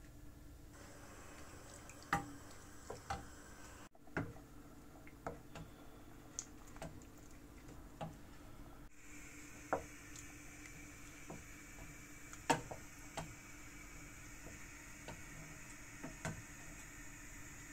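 A wooden spoon stirs and knocks against a metal pot.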